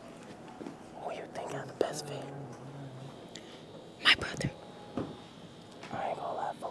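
A young man whispers close by.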